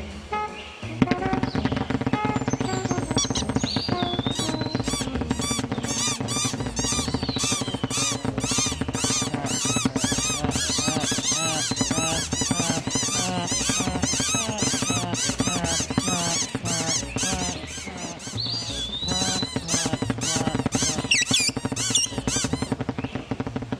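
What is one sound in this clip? Small birds chatter and squawk in rapid, high chirps.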